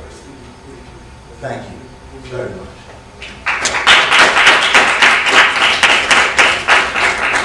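An elderly man speaks calmly to an audience.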